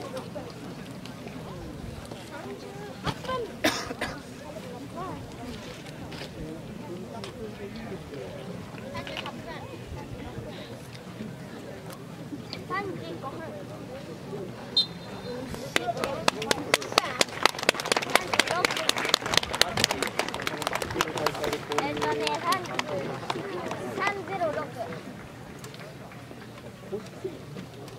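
A crowd of spectators chatters at a distance outdoors.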